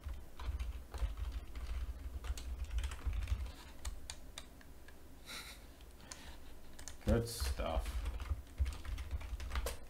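Keyboard keys click and clatter in quick bursts.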